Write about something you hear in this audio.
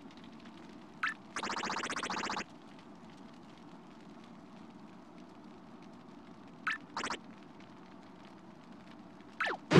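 Short bright chiming blips sound in quick bursts.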